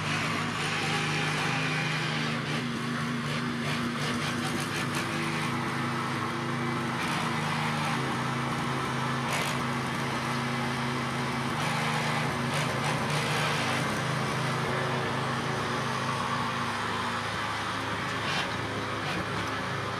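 A small petrol tiller engine runs with a steady, rattling drone close by.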